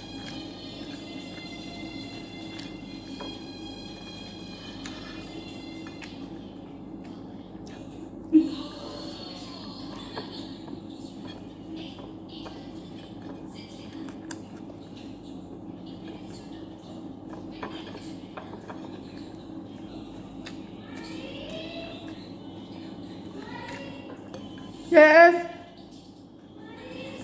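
Fingers rustle through food on a plate.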